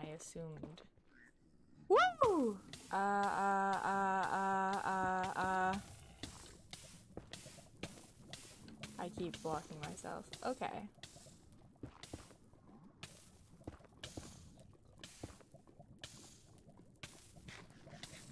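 Lava bubbles and pops.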